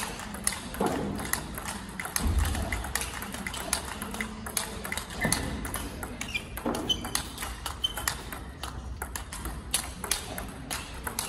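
Ping-pong rallies echo through a large hall.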